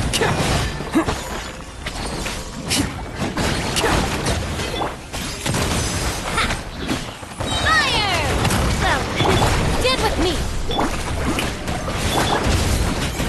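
Sword strikes clash repeatedly.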